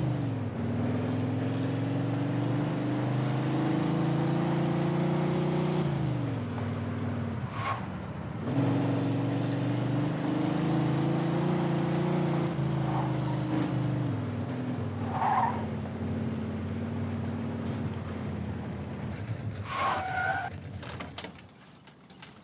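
A car engine hums and revs as a car drives along.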